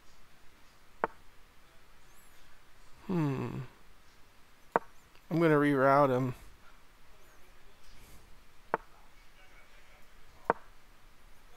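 Chess pieces click sharply as moves are made.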